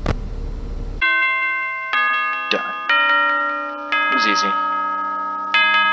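Bright chimes ring out in a cheerful tune.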